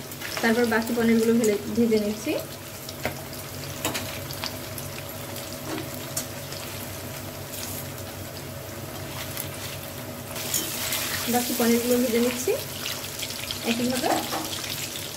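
Food sizzles in hot oil.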